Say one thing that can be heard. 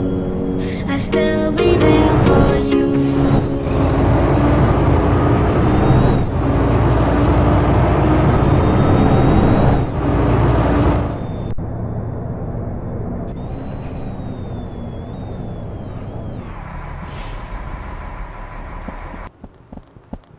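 A bus engine rumbles steadily, then grows quieter.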